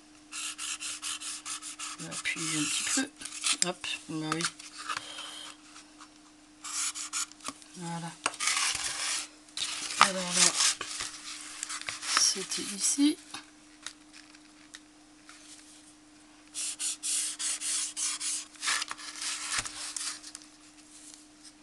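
A felt marker scratches and squeaks across cardboard in quick strokes.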